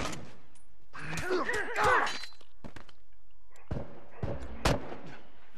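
A knife stabs into a body with a dull thud.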